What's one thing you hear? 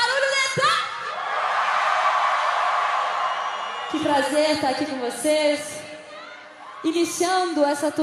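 A huge outdoor crowd cheers and sings along.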